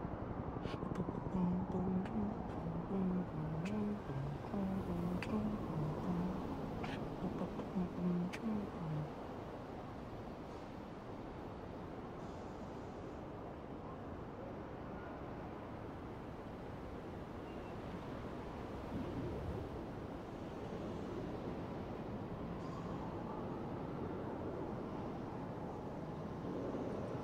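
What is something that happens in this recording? Wind blows steadily at a great height.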